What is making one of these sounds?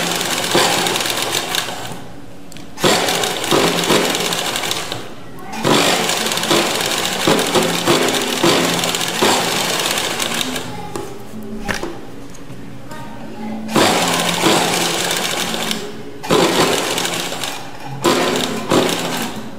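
A sewing machine stitches in quick bursts.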